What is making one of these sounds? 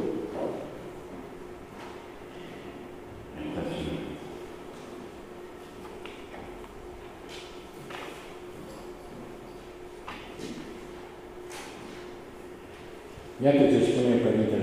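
An elderly man reads aloud slowly into a microphone, with long pauses.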